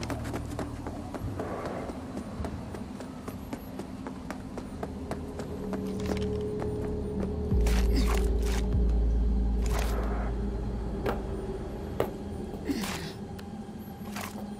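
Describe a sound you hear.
Quick footsteps tap on hard ground.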